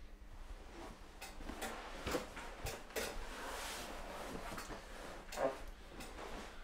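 A body shifts and rustles on a padded table.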